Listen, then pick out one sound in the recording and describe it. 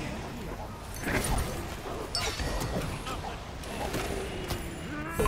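Magic spells burst and crackle with sharp bangs.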